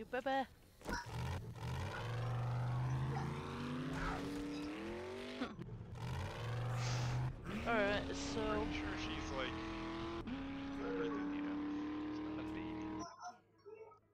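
A vehicle engine revs and roars, rising in pitch as it speeds up.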